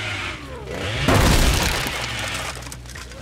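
Wooden boards smash and splinter.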